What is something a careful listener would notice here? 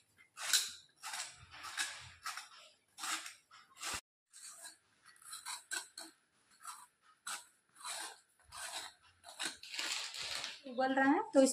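A peeler scrapes rapidly over the skin of a vegetable.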